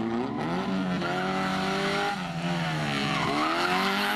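Tyres screech on tarmac as a car turns sharply.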